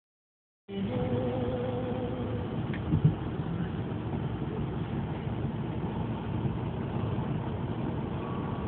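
Tyres roar steadily on a highway.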